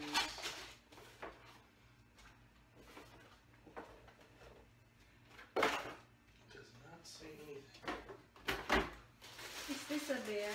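Paper and packaging rustle and crinkle.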